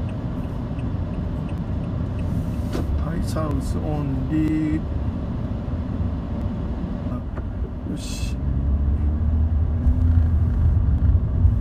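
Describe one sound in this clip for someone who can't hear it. A car engine hums with a low road rumble from inside a moving car.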